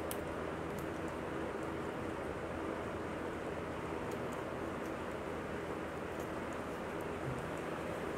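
Cardboard tubes knock and rustle softly as they are handled.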